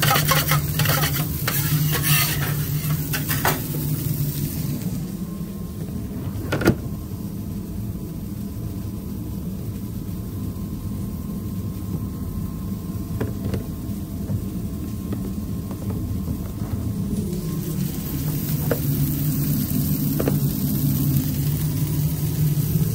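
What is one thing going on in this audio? Burger patties sizzle loudly on a hot griddle.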